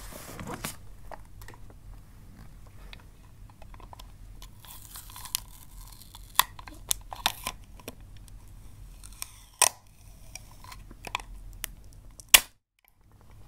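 A plastic tape dispenser clicks and rattles in hands.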